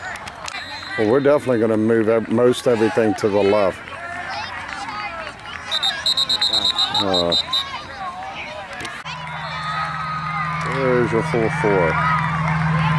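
Young boys shout loudly outdoors.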